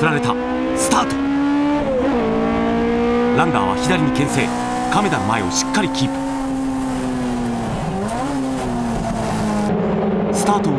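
A race car engine roars loudly up close, its pitch climbing steadily and dropping sharply at each gear change.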